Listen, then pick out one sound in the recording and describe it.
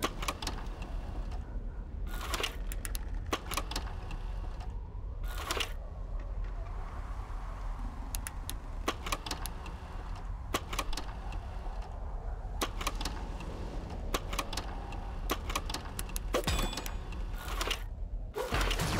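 Menu clicks tick sharply, again and again.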